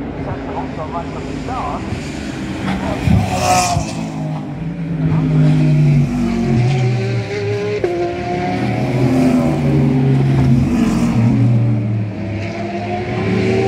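Racing car engines roar along a circuit in the distance.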